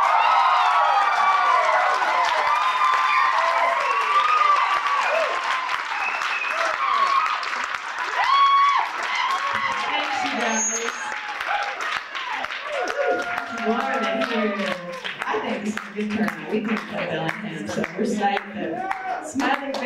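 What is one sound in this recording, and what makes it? A live band plays on stage in a large echoing hall.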